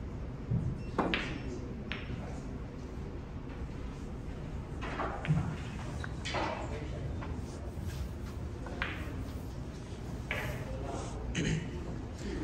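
Snooker balls click together.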